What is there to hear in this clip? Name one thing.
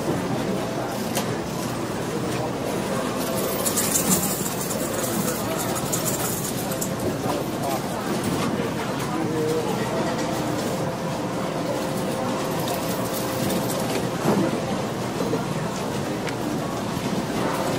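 Slot machines chime and jingle steadily.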